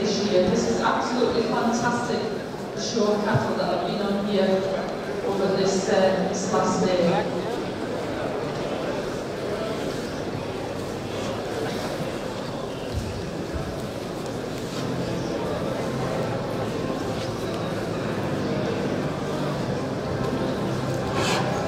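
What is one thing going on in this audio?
A crowd murmurs quietly throughout a large hall.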